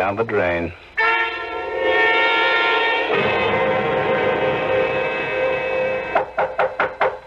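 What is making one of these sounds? Music plays through an old radio's loudspeaker.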